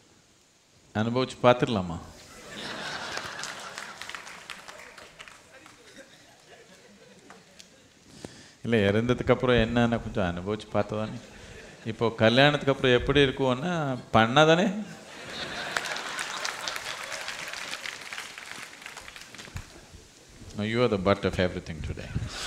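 An elderly man speaks calmly and thoughtfully into a microphone, with pauses.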